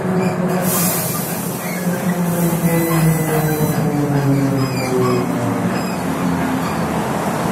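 A bus engine whines, rising and falling in pitch as it slows.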